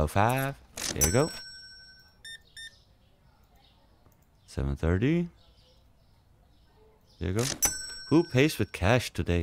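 A checkout scanner beeps.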